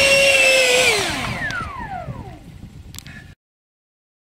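A model jet's turbine engines wind down and fall silent.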